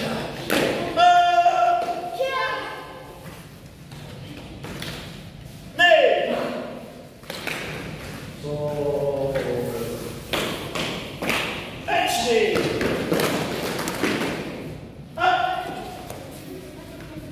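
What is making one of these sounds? A man calls out commands loudly in an echoing hall.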